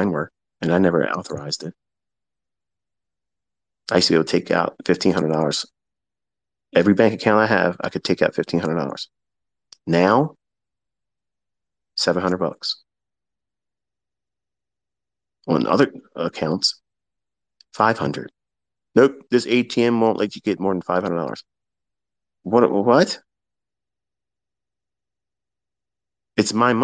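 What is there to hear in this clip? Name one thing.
A man speaks calmly and close up, in short phrases with pauses.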